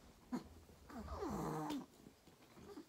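A baby whimpers briefly close by.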